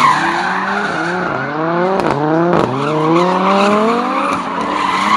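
Car engines rev hard and roar, rising and falling in pitch.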